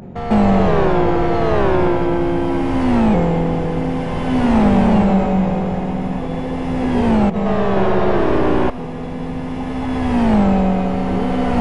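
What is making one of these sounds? A racing car engine roars loudly, its pitch climbing and dropping with each gear change.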